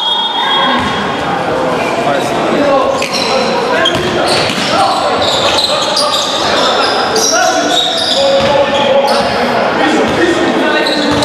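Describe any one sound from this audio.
Young men shout to each other during play.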